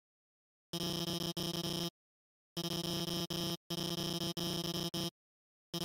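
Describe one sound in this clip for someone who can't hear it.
Rapid, pitched electronic blips chatter in short bursts like a game character talking.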